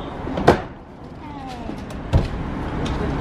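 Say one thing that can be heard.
A car seat folds down with a dull thump.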